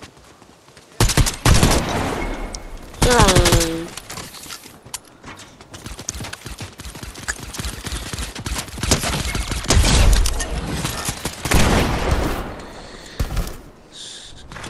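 Video game gunshots fire in loud bursts.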